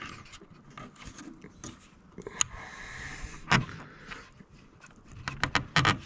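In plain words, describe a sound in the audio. Plastic parts click and knock as a hose is handled up close.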